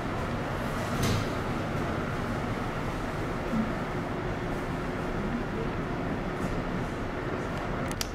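Older women talk quietly at a distance.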